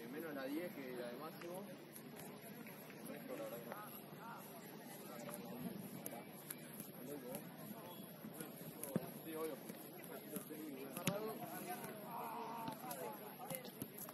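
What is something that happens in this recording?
A football thuds against a foot as it is kicked and juggled.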